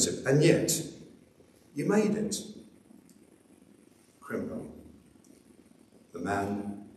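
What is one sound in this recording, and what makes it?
A man speaks calmly into a microphone, in short phrases with pauses, in a room with a slight echo.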